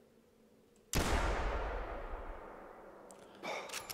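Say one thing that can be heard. A pistol fires a single loud shot that echoes away.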